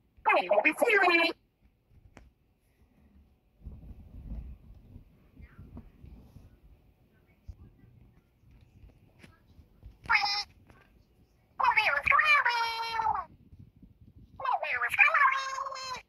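Soft plush toys rustle and brush against a blanket.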